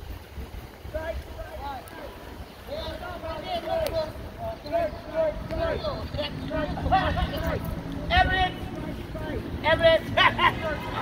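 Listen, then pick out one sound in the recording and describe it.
A crowd of people sings and chants some distance away.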